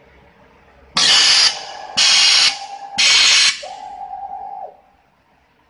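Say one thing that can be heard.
A machine lets out short, loud hissing bursts.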